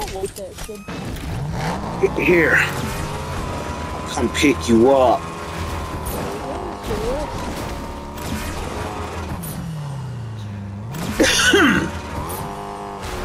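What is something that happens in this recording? A car engine revs and hums, rising and falling in pitch.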